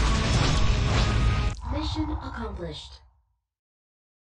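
Game music plays loudly, then a short melody sounds and fades away.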